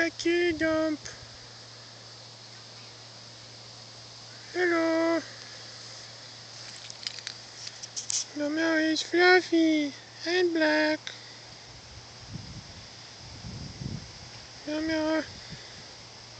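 A cat meows loudly and repeatedly nearby.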